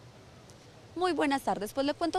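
A young woman speaks clearly into a microphone close by.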